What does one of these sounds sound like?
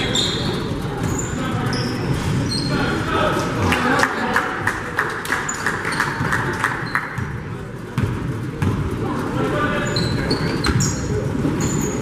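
A crowd of people chatters throughout in a large echoing hall.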